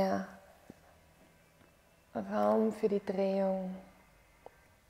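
A young woman speaks calmly and slowly close to a microphone.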